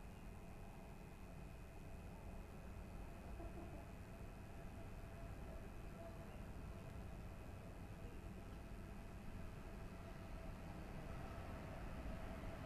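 A train rolls slowly in with a low, steady rumble.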